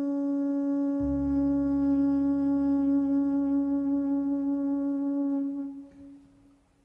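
A trumpet holds a long, steady note up close.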